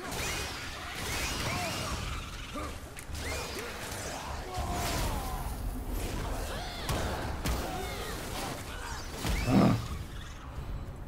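Weapons clash and crash in a fast, noisy fight.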